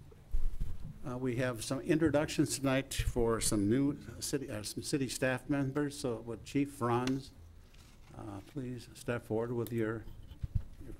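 A man speaks calmly through a microphone in a large room.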